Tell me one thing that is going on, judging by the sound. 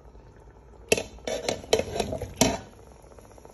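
Yam cubes drop into a pot of broth.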